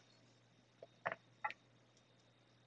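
A metal coffee filter holder knocks softly as it is set down on a rubber mat.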